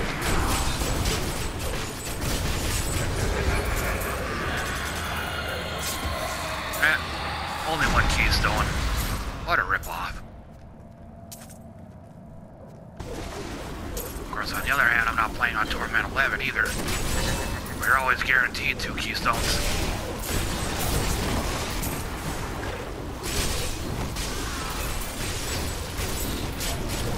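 Heavy weapon blows thud and slash in quick succession.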